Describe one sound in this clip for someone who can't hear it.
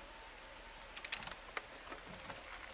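A door handle rattles and clicks.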